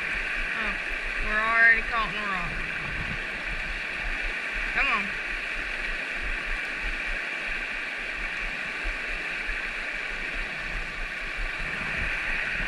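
A shallow stream rushes and splashes steadily over rocks nearby.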